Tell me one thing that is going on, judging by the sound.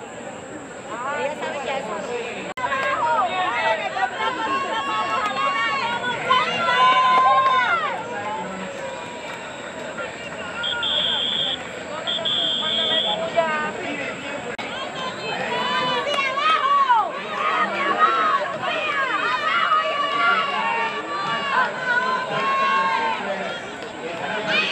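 A crowd cheers and shouts from the stands outdoors.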